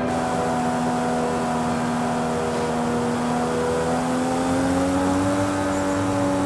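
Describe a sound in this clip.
A sports car engine hums steadily, then revs higher as the car speeds up.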